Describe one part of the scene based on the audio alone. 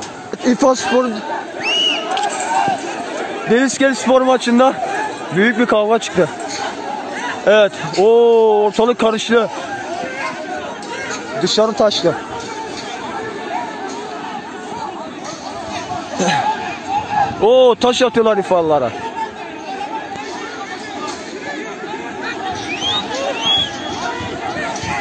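Men shout and yell loudly outdoors in a tense crowd.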